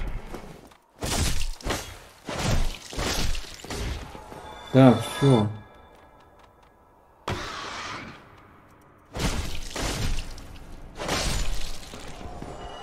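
Sword blows strike and thud.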